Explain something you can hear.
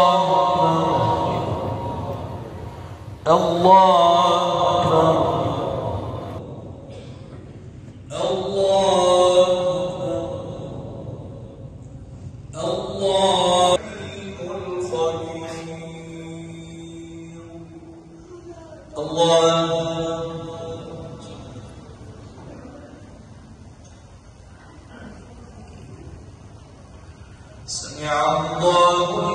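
A man chants a prayer over a loudspeaker in a large echoing hall.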